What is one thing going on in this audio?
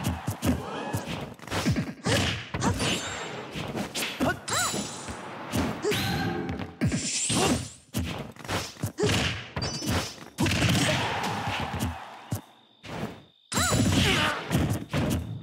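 Punches and blasts from a fighting game thud and crackle in quick bursts.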